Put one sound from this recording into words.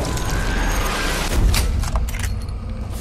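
A bullet smacks into a body with a wet crunch.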